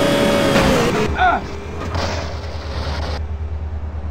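A motorcycle crashes and scrapes along the road.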